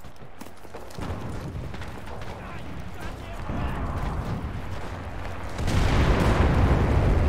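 A burning vehicle roars and crackles, growing louder up close.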